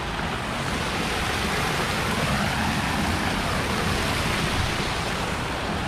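A fountain splashes steadily into a pool.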